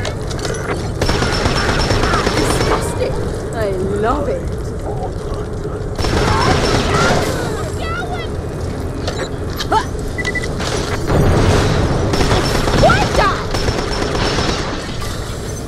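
Gunfire blasts in a video game.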